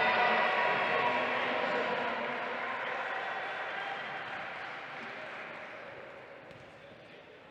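A crowd cheers and applauds in a large echoing hall, then quietens.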